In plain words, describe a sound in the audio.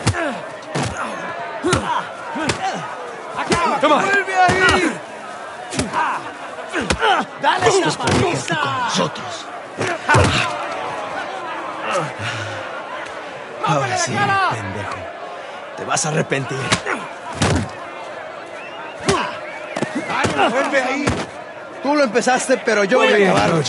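A crowd of men shouts and jeers loudly.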